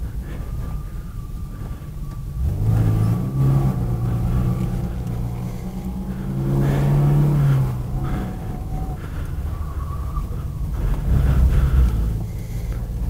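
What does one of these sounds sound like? A car engine roars and revs up and down from inside the cabin.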